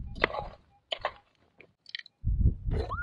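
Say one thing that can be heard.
A small scoop scrapes through gravel.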